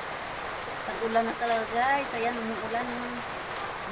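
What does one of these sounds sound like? A middle-aged woman speaks close by.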